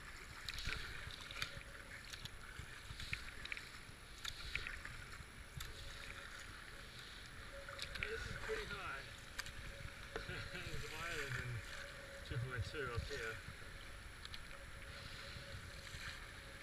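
A paddle dips and splashes in the water in steady strokes.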